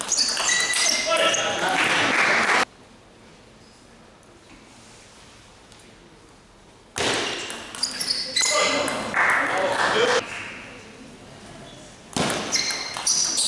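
A table tennis ball clicks back and forth off bats and a table in a large echoing hall.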